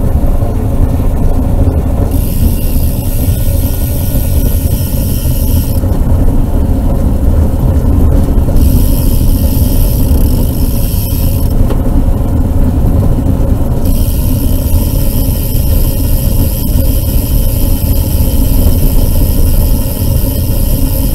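Wind rushes loudly and buffets against a small vehicle moving along a road.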